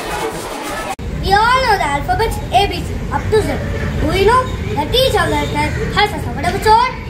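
A group of young children sings together.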